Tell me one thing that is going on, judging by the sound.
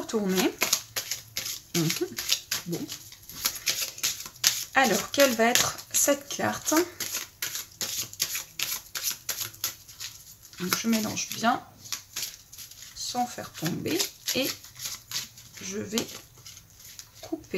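Playing cards riffle and slap together as a deck is shuffled by hand.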